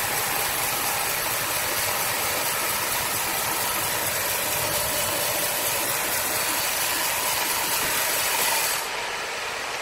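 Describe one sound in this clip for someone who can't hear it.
A band sawmill cuts through a log with a loud, steady whine.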